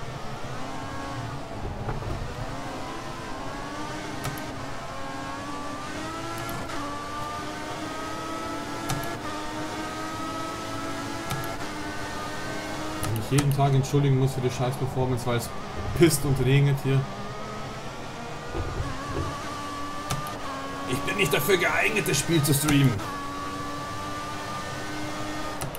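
A racing car engine whines, rising in pitch through each gear and dropping with each shift.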